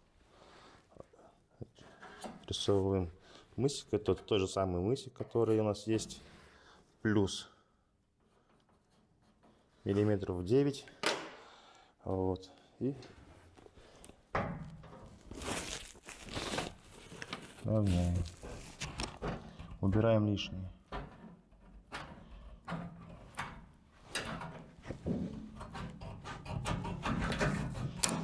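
Metal sheeting clatters and knocks as a man works it by hand.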